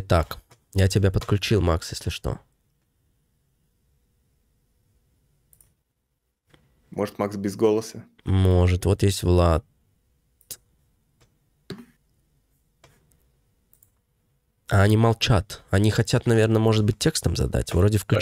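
A young man speaks with animation, close into a microphone.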